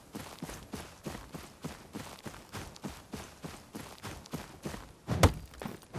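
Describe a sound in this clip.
Footsteps rustle through tall grass at an even pace.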